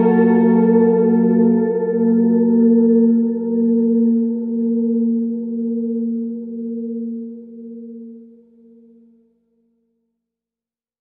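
A guitar chord rings out through an effects pedal and slowly fades away.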